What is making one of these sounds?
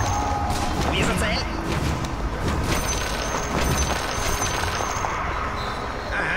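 Spells crackle and weapons clash in a fantasy battle.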